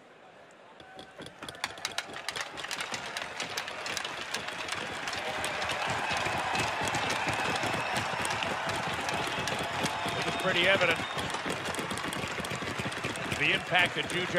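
A large crowd applauds loudly in a big echoing arena.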